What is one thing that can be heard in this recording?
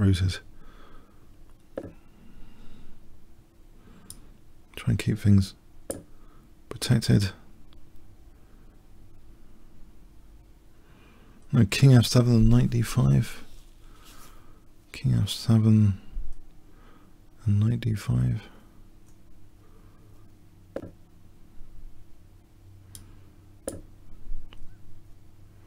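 A man speaks with animation through a microphone, close by.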